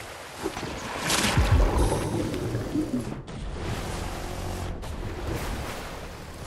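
Water splashes as a swimmer paddles through it.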